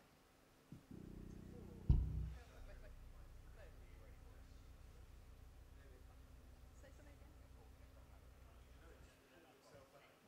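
A bass guitar drones low through an amplifier.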